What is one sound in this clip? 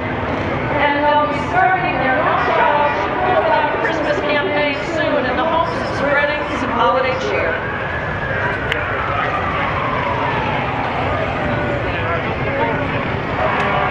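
Motorcycle engines rumble as they ride slowly past.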